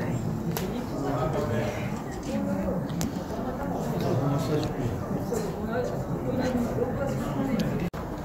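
Footsteps tap on a walkway.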